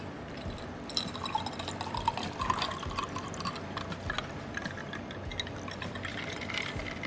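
Water pours from a pitcher into a glass.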